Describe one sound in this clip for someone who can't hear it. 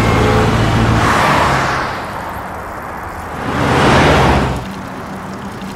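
A car whooshes past close by.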